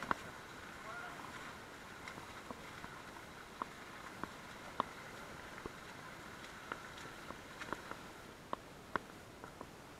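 Footsteps splash and scuff on wet rock.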